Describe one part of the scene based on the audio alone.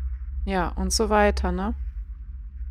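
A young woman speaks briefly and with animation into a close microphone.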